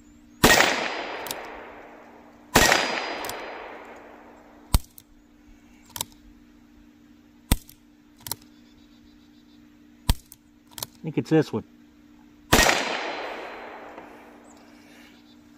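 A revolver fires loud shots outdoors, each echoing away.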